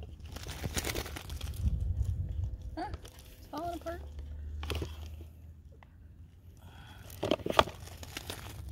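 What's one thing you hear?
A plastic seedling tray crinkles and rattles as plants are pulled from it.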